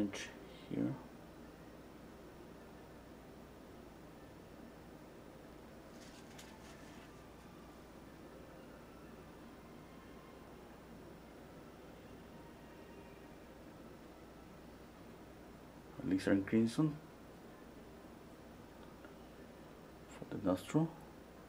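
A paintbrush softly brushes across canvas.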